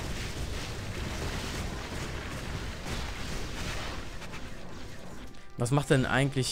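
Magic spells whoosh and crackle in a fight.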